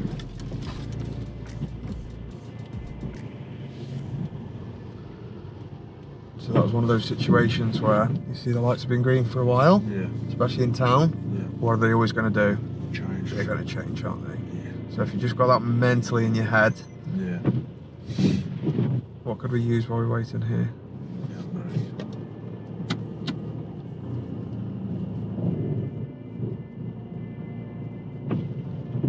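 A car engine idles quietly.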